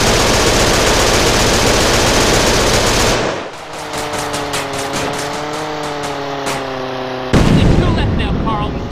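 A small propeller plane's engine roars and drones.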